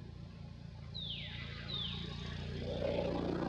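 Young monkeys shriek sharply nearby.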